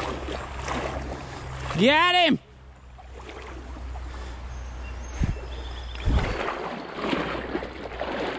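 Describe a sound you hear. A river flows and ripples gently nearby.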